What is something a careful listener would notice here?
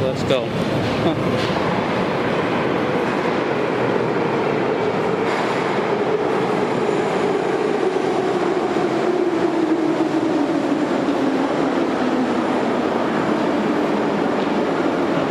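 Footsteps echo on a hard floor in a tiled passage.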